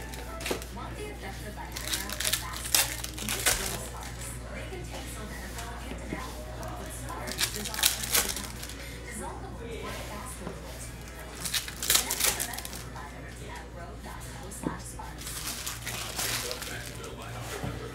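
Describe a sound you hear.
Plastic card sleeves and trading cards rustle and crinkle in close handling.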